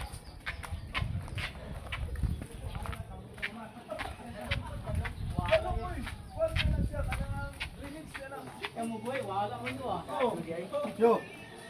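Footsteps patter steadily on hard ground outdoors.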